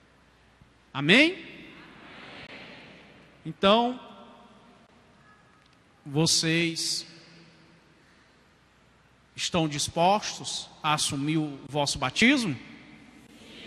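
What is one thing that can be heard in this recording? A middle-aged man speaks calmly through a microphone in a large echoing hall, with pauses between phrases.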